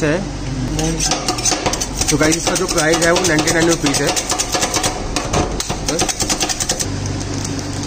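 Metal scrapers chop and scrape rapidly on a metal plate.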